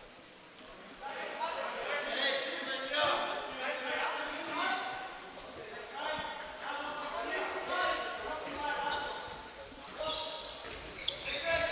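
Spectators chatter nearby in an echoing hall.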